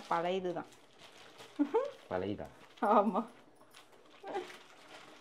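A plastic packet crinkles in a woman's hands.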